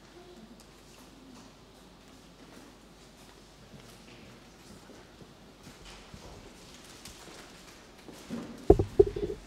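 A man speaks at a distance in an echoing room.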